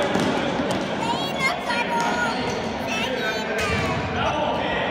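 Sports shoes squeak on a sports floor.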